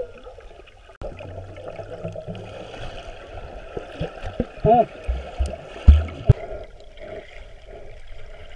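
Water rushes and bubbles around a diver swimming underwater.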